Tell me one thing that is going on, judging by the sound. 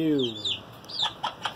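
A hen clucks low.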